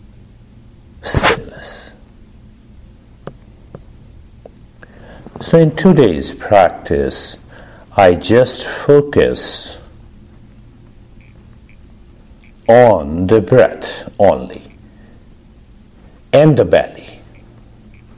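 A man speaks calmly through a microphone, pausing between phrases.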